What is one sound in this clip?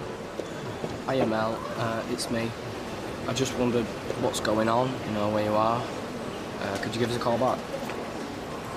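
A young man talks calmly on a phone nearby.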